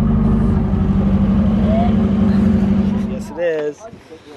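A car engine idles with a low, steady hum, then cuts off.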